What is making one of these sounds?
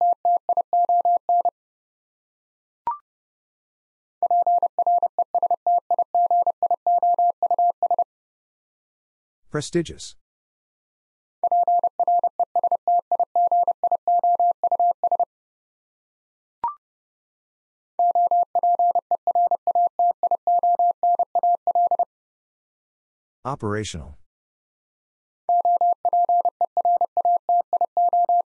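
A Morse code key beeps out rapid bursts of short and long tones.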